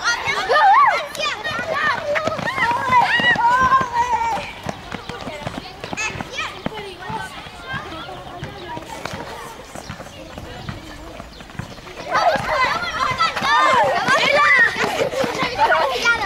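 Children's footsteps patter on a hard court.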